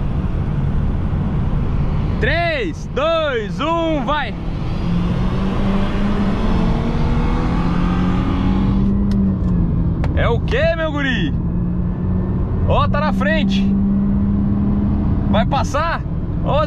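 A car engine revs hard and rises in pitch through quick gear changes.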